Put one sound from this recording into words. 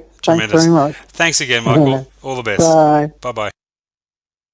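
A middle-aged man speaks calmly close to a microphone.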